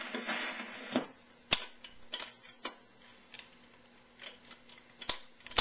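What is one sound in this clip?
A record needle clicks and crackles in the groove.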